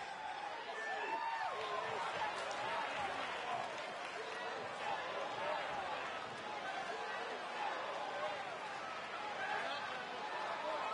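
A large crowd cheers and whistles loudly in a huge open arena.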